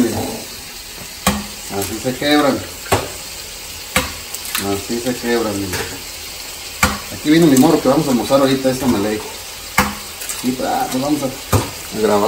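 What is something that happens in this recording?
An egg cracks against the rim of a bowl.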